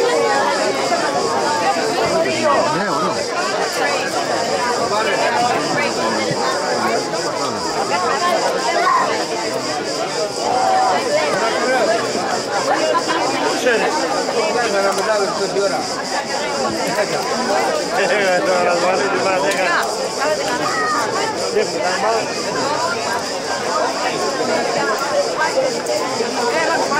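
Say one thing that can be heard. A crowd of men talk and shout over one another outdoors.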